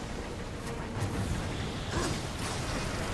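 A magical energy blast whooshes and crackles.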